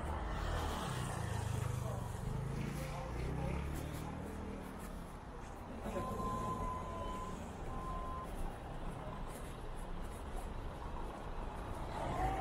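Footsteps tap on wet pavement.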